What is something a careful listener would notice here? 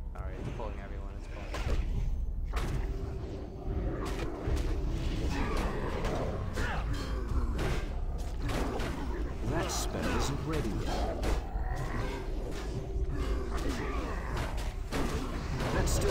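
Weapons strike repeatedly with sharp hits.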